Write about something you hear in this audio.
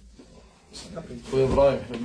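A man speaks briefly nearby.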